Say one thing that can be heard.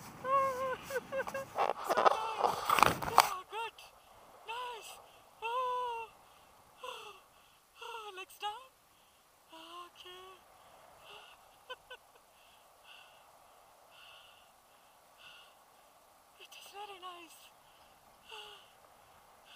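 A young woman talks and laughs cheerfully close by.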